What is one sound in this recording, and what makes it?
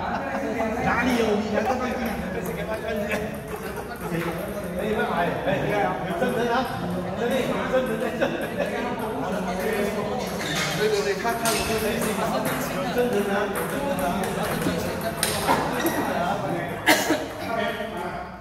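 A table tennis ball clicks off paddles and the table in a rally.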